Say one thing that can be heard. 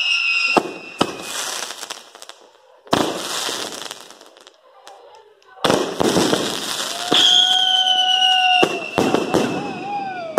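Fireworks crackle and fizzle.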